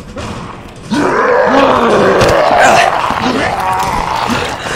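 A zombie snarls and groans loudly close by.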